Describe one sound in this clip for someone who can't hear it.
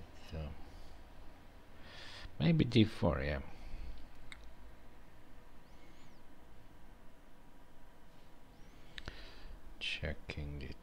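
A middle-aged man speaks calmly and close into a headset microphone.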